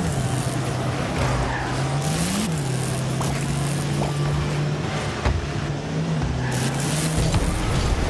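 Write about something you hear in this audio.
A game car's engine hums steadily and rises in pitch as it speeds up.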